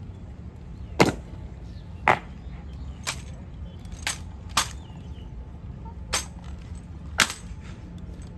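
Boots stamp and rifle butts knock sharply on stone.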